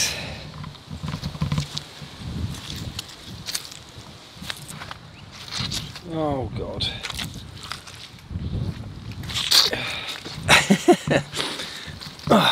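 Boots squelch and step through wet mud.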